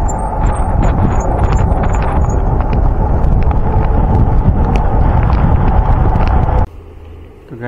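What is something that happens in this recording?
Strong wind rushes and roars loudly.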